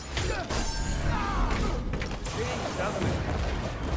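A fiery blast whooshes through the air.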